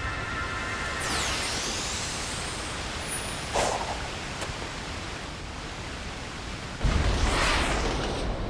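A whoosh rushes past.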